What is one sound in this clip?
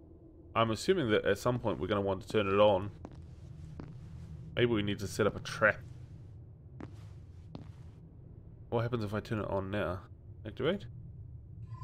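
A man talks animatedly and close into a microphone, in short bursts.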